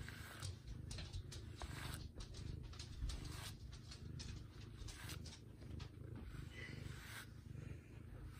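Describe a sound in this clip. A cat purrs loudly up close.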